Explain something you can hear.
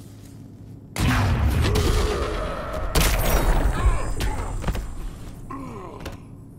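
Heavy blows and crashes thud in a game fight.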